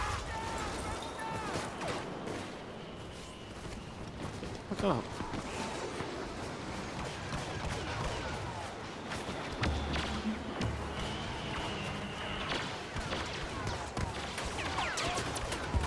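Laser blasters fire in rapid bursts with sharp zapping shots.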